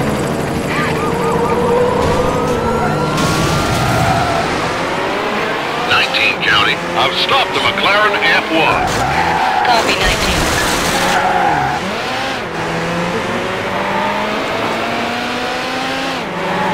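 A racing car engine revs and climbs through its gears.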